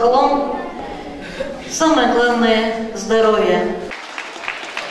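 A woman speaks with animation into a microphone, heard through loudspeakers in a large hall.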